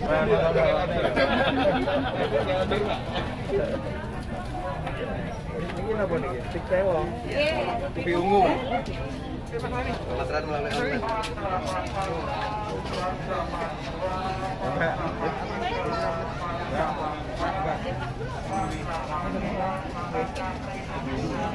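Several men and women talk nearby at once, outdoors.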